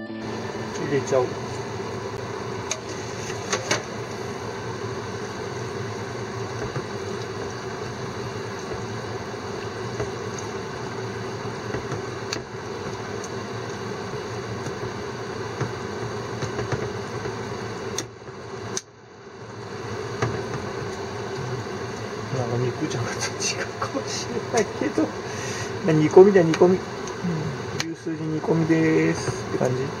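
A pot of stew bubbles and simmers steadily.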